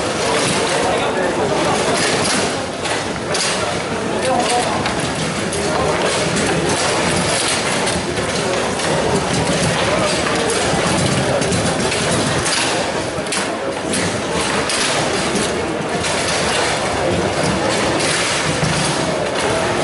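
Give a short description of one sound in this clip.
Plastic players clack against a ball and rods rattle on a table football game.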